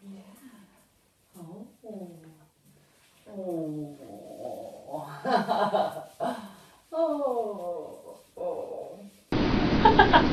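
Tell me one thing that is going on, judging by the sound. A dog whines and cries in high, sliding yelps, close by.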